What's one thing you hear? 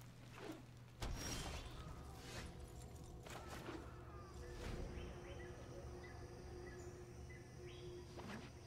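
Digital game sound effects chime and whoosh.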